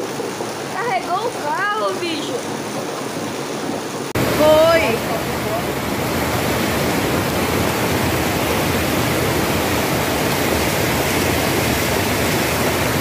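Floodwater rushes loudly down a street.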